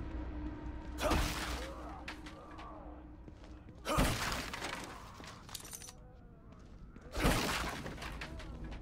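Wooden crates are smashed open with sharp cracking blows.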